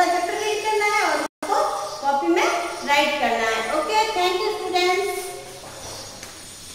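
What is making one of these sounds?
A woman speaks clearly and calmly, close by, as if teaching.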